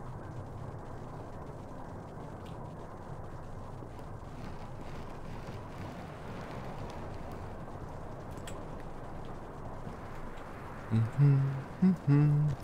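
Wind blows steadily with a low rumble.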